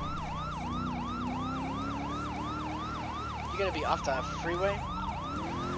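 A police siren wails in rapid, rising and falling yelps.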